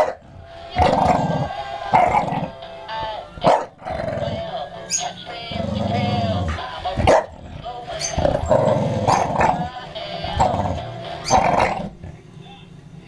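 A battery toy plays a tinny jingle.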